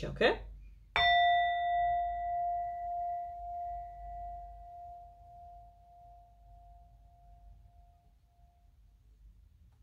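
A singing bowl is struck and rings with a long, slowly fading tone.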